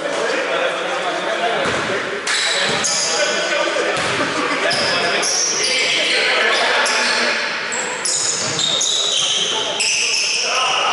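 Sneakers squeak on a hardwood court in an echoing hall.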